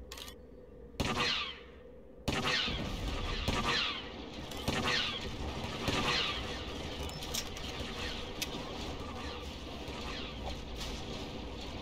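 Laser guns fire repeatedly in a battle.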